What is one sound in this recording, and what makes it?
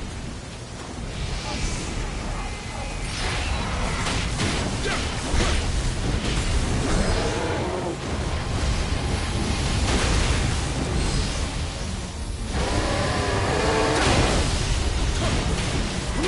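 Fiery blasts burst with heavy booms.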